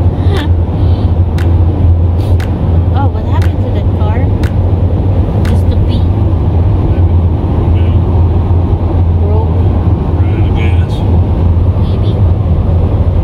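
A car's engine hums steadily.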